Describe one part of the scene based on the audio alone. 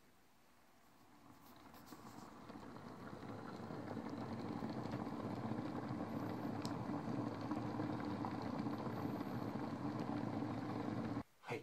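Water in a small steamer heats up, hissing and bubbling louder and louder.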